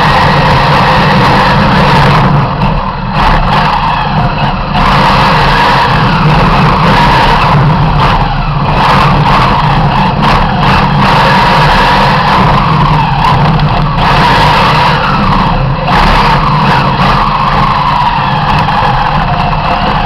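A race car engine roars loudly from inside the car, revving up and down through the gears.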